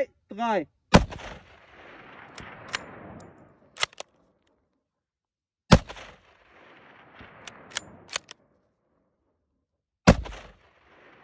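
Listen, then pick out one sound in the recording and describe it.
A rifle fires loud shots that echo across open hills.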